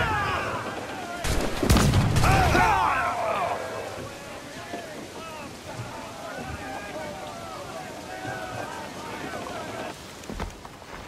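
A crowd of men shouts and cheers.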